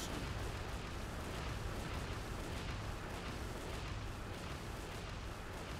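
Magic spells crackle and hiss.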